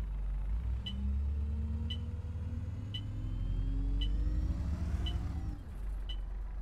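An automatic bus gearbox whines, rising in pitch as the bus speeds up.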